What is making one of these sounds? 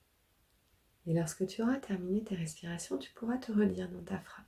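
A middle-aged woman speaks calmly and clearly, close to the microphone.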